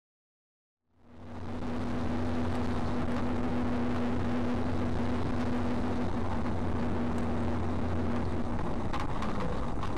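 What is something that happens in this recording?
Tyres roll on an asphalt road.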